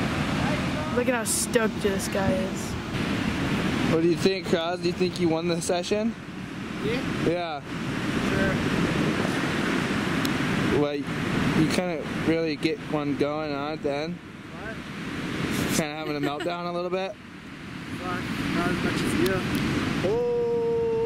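A young man talks and laughs close by, outdoors.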